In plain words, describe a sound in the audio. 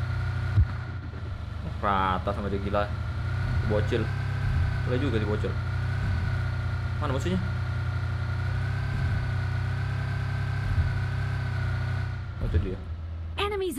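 A car engine drones steadily.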